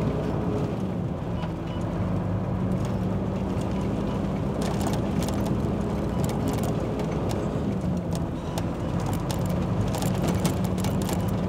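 Raindrops patter and tick on a windscreen.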